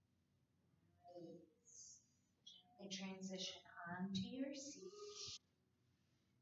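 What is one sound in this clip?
A young woman speaks calmly and softly.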